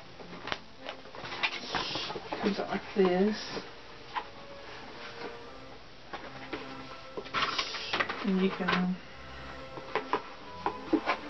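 Packaging rustles and crinkles as it is handled.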